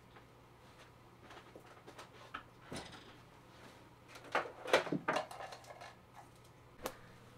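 Small objects clatter and knock close by.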